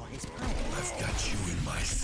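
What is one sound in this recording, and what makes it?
Rapid gunfire blasts out close by.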